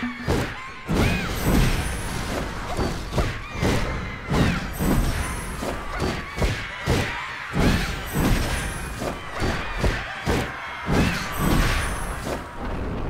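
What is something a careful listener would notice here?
Blades clash and strike in quick, repeated hits.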